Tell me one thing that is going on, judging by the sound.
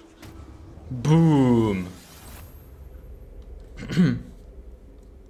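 A young man speaks with animation through a close microphone.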